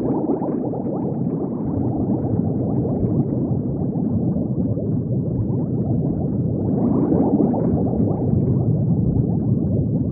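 Bubbles gurgle and burble underwater, low and muffled.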